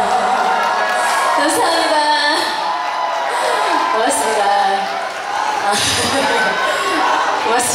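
A young woman sings through a microphone over loudspeakers.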